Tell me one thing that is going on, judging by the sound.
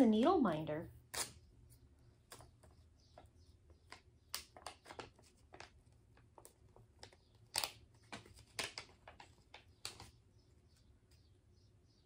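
Plastic items rustle and click as a woman sorts through them.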